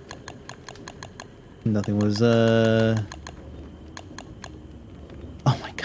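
Soft, even clicks tick quickly as menu items are scrolled through.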